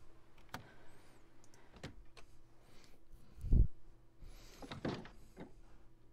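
A wooden door unlocks and creaks open with a thud.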